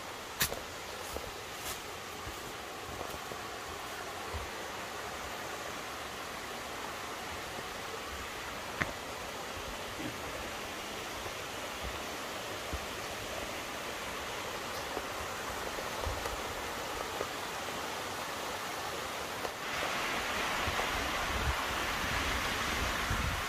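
A shallow stream trickles over rocks nearby.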